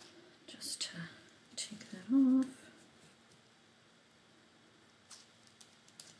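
Cloth rustles softly.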